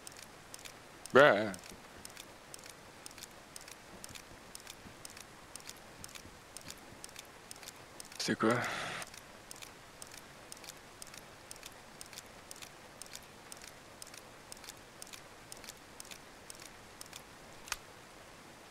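Small mechanical clicks tick steadily.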